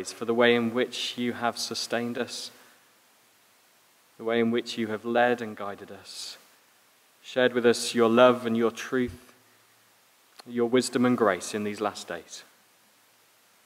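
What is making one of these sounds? A man speaks calmly into a microphone, reading out in short phrases.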